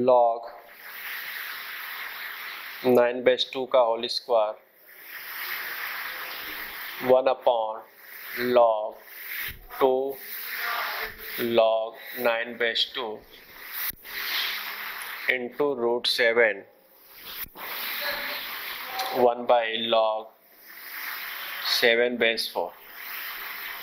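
A young man speaks calmly, explaining.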